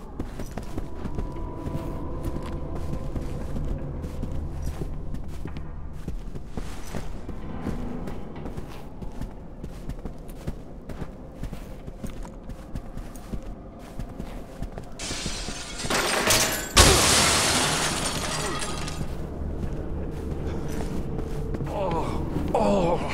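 Footsteps tread slowly across a wooden floor.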